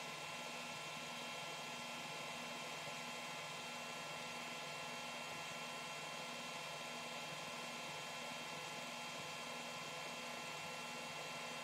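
A computer hums steadily nearby.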